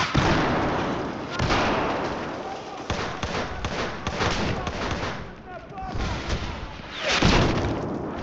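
A sniper rifle fires with a loud, echoing crack.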